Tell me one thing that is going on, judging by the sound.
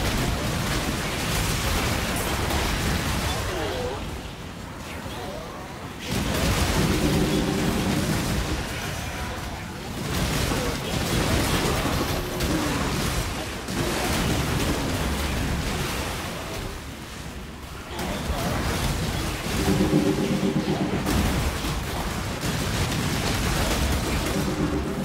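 Magic blasts crackle and boom in rapid bursts.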